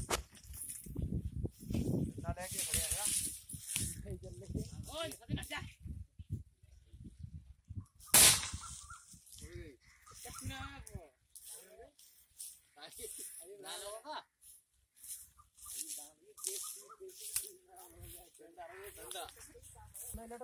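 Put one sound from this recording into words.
A hoe thuds into dry soil.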